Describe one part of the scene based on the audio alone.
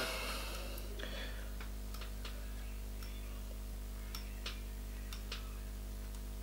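Thin thread ticks and rubs softly as it is wound onto a small hook.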